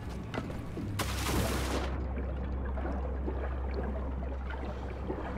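Water splashes and bubbles as something plunges in.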